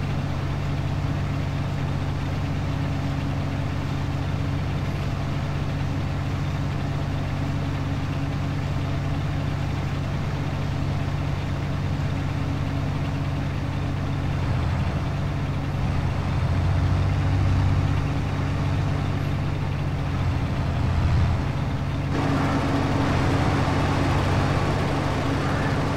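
A harvester engine drones steadily and low.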